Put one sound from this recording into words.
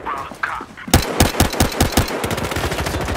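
Pistol shots fire in quick succession.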